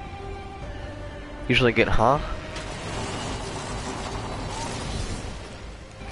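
Wind rushes loudly as a game character skydives and lands.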